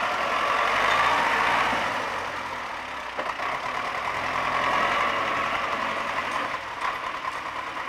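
A loader bucket scrapes and clanks.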